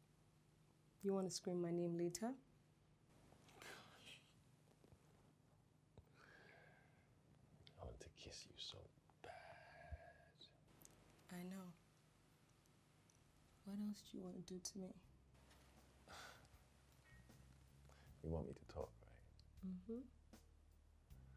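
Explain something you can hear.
A woman speaks quietly and close by.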